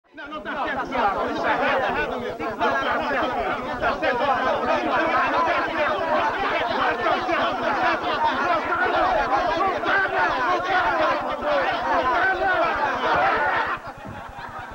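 A crowd of men shout and argue over one another with excitement.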